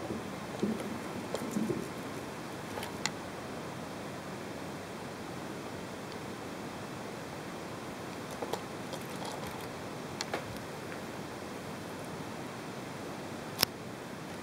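Plastic parts of a toy car click and knock as a hand turns it over.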